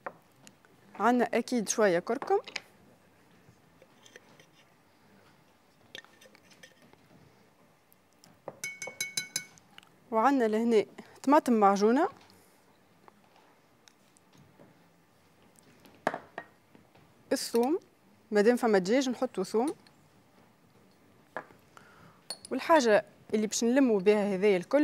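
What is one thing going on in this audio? A young woman talks calmly, close by, in bursts.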